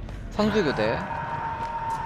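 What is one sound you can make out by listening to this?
A young man exclaims briefly into a microphone.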